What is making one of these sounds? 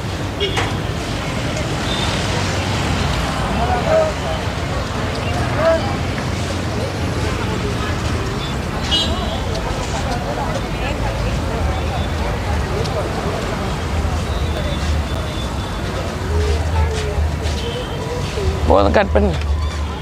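Outdoors, a crowd murmurs and chatters all around.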